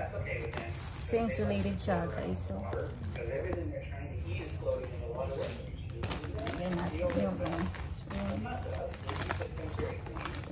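Fabric rustles as a bag is opened and handled.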